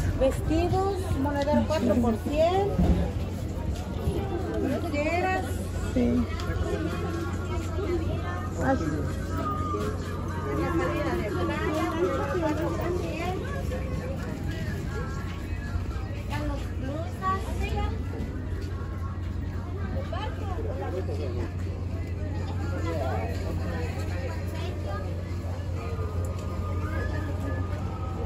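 Several people chat in the background.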